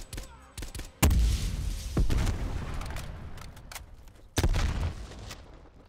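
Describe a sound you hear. Loud gunshots boom and echo.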